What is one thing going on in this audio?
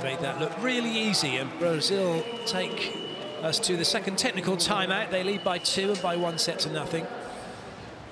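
A large crowd cheers and whistles loudly in an echoing arena.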